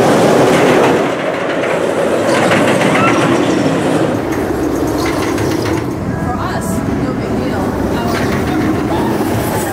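A roller coaster train rumbles and clatters along wooden track.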